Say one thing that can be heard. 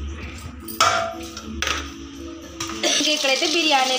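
A metal lid clangs onto a pot.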